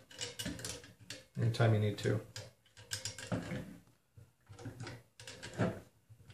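A small hex key scrapes and clicks against metal parts.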